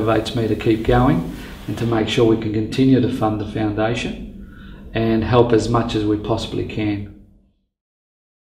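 A middle-aged man speaks calmly and earnestly close to a microphone.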